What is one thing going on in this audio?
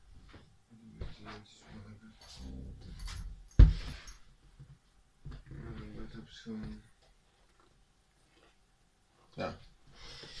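Fabric rustles and shuffles close by.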